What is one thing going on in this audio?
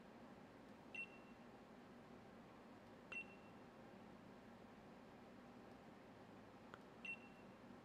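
A short soft chime sounds a few times.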